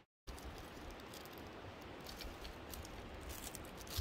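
Dry twigs snap and rustle as they are handled.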